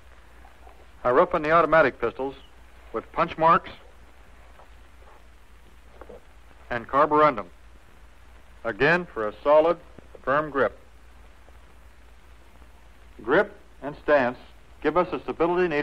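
A man speaks calmly and clearly, as if explaining, through an old, slightly hissy recording.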